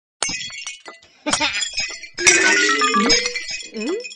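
A vase shatters with a crash.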